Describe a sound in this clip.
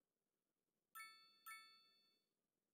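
A soft electronic chime sounds twice.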